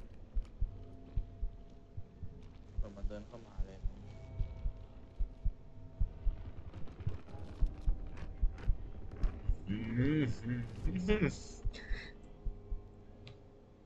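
Quick footsteps thud on a soft floor.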